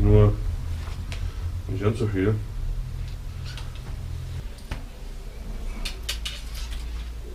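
Metal parts of a bicycle click and rattle as a man works on them.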